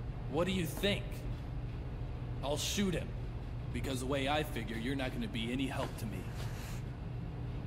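A young man speaks calmly.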